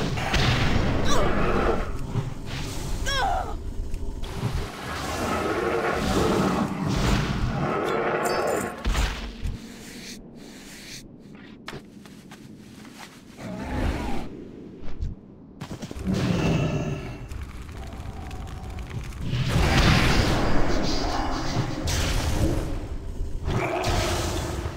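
Spell effects and hits crackle and thud during a fight.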